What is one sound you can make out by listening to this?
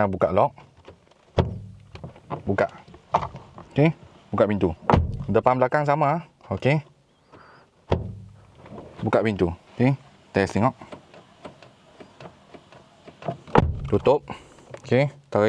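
A car door handle clicks as it is pulled.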